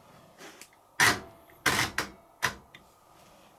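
A washing machine dial clicks as it is turned.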